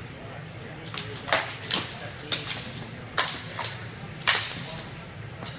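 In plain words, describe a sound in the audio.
Wooden swords clack sharply against each other.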